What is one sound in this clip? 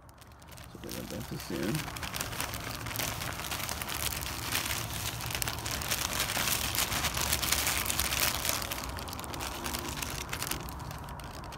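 A plastic bag crinkles as powder pours out of it.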